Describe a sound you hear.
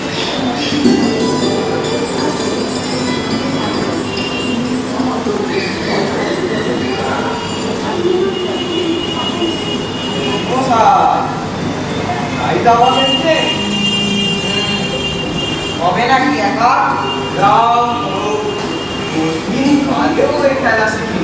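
A young man speaks with animation on a stage, heard through a hall's loudspeakers.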